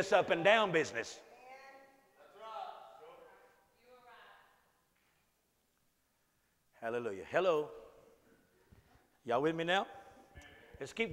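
An elderly man speaks with emphasis in a slightly echoing room.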